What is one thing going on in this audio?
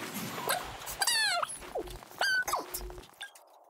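A bright chime rings out as a challenge ends.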